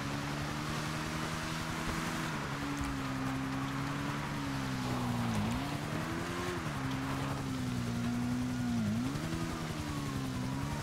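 A motorbike engine hums steadily, its pitch rising and dipping as it speeds up and slows.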